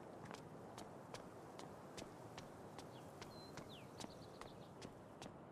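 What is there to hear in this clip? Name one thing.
Quick footsteps thud on a paved street.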